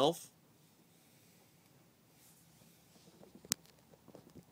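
A plastic figure clicks as it is set down.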